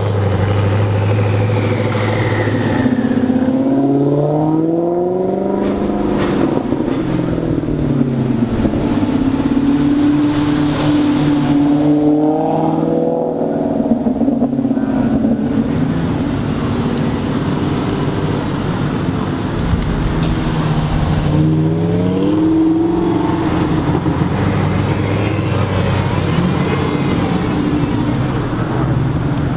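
Sports car engines rev loudly, rising and falling in pitch.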